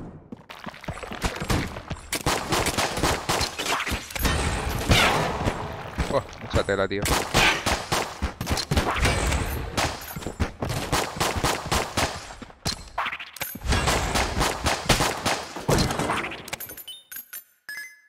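Gunshots fire rapidly in bursts.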